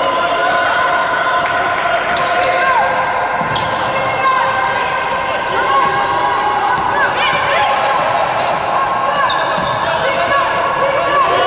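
A basketball bounces on the court as it is dribbled.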